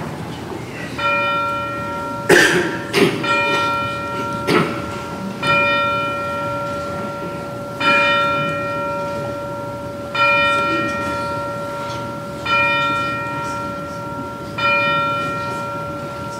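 Handbells ring out in a slow, repeating pattern, each chord ringing on and fading.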